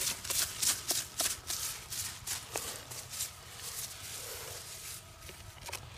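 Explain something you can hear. Leaves rustle as a plant is pulled and handled.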